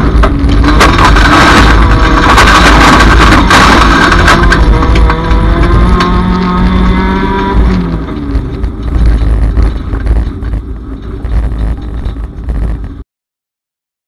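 Gravel and stones rattle against the underside of a car.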